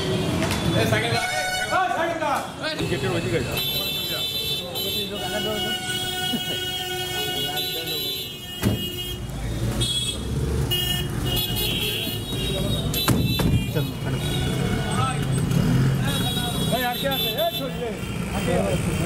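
Several men talk loudly close by.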